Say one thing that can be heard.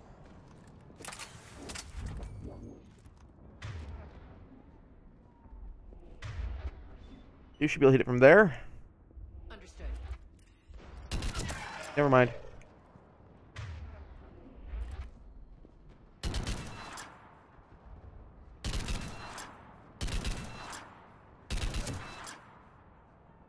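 Sniper rifle shots ring out one after another, each with a short echo.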